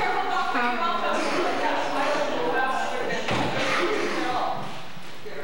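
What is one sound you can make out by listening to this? Young women sing together into microphones.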